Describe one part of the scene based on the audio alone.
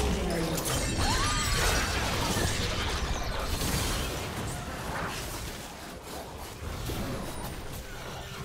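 Magic spells whoosh and crackle in a fierce fight.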